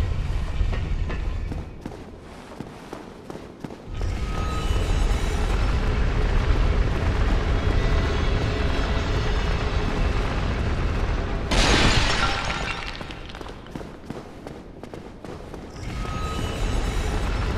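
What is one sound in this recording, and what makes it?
Armoured footsteps clatter on stone at a run.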